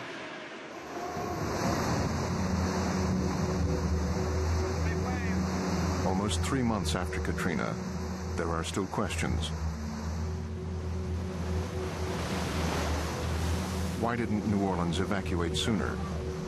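Strong wind roars and howls outdoors.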